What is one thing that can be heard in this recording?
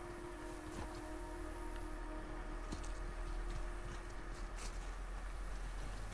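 Tall dry grass rustles as someone pushes through it crouching.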